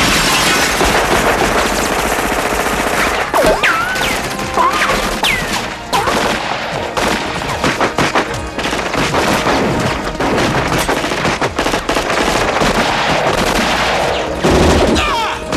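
Automatic guns fire in rapid bursts in a large echoing hall.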